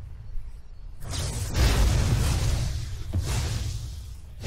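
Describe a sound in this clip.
Fiery magic effects whoosh and crackle in a game.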